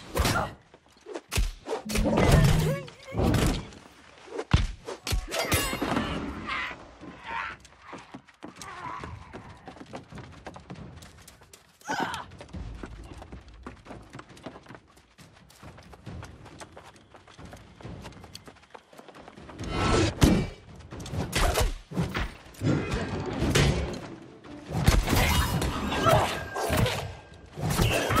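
Sword strikes and magic spells hit with loud, crackling bursts.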